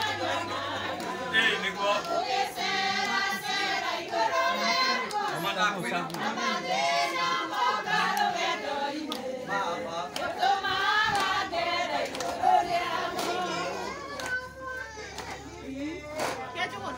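A group of women sing together outdoors.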